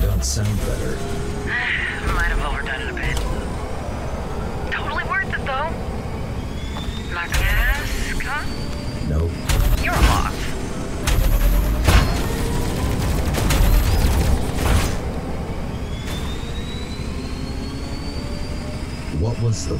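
A racing engine roars steadily at high speed.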